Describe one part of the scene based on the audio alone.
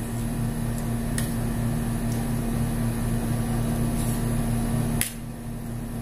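A spoon scrapes and clinks against a metal plate.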